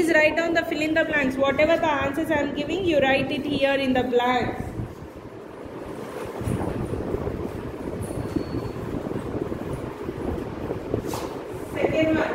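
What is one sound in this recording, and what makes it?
A woman reads aloud clearly and at a steady pace, close by.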